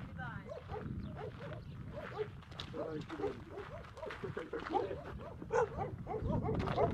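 Several adults talk with animation close by, outdoors.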